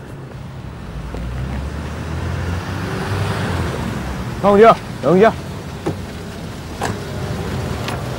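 A Jeep SUV rolls up and idles.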